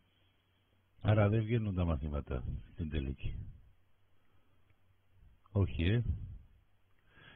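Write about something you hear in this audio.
A man speaks with animation into a microphone over an online call.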